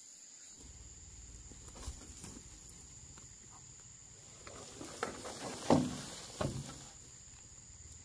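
A bamboo pole scrapes and rustles as it is dragged through dry grass.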